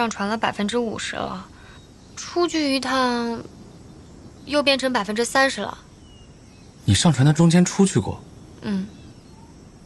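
A young man speaks nearby in a teasing, animated tone.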